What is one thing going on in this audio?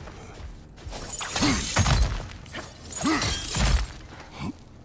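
A burning blade whooshes through the air.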